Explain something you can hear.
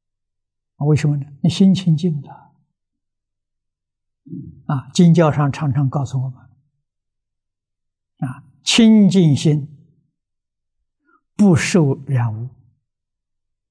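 An elderly man speaks calmly and slowly into a microphone, in short phrases with pauses.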